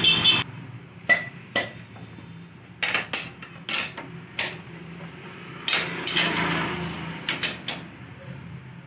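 A wrench clicks and clanks against a metal nut.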